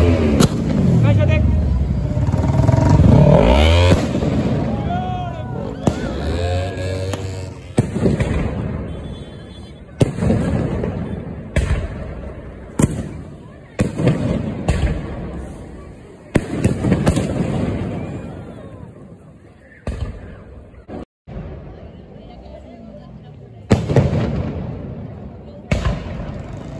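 Fireworks explode with loud booming bangs, echoing afterward.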